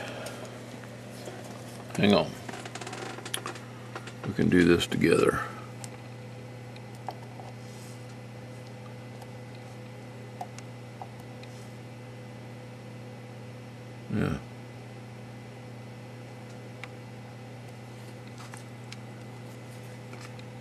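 A low electrical hum drones steadily from a powered radio set.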